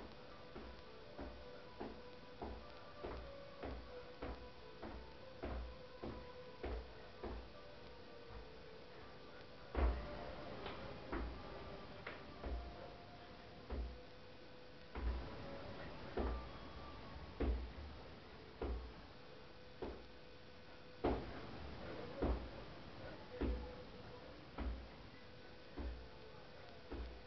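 Feet land with dull thumps on a floor in a steady, quick rhythm.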